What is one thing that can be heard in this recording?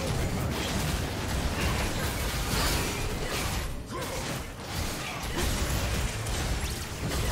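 Game spell and combat effects crackle and boom in quick succession.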